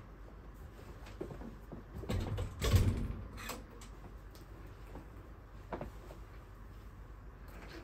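Footsteps thud across a floor close by.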